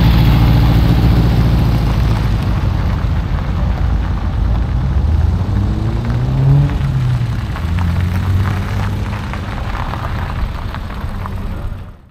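A car engine hums and revs as the car drives around close by.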